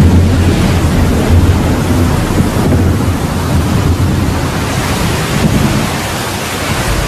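A strong blizzard wind roars and howls steadily.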